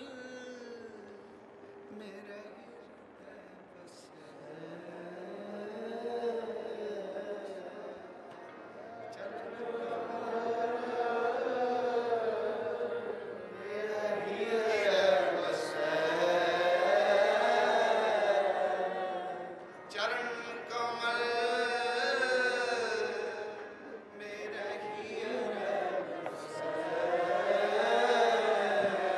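A middle-aged man sings a slow, flowing hymn into a microphone.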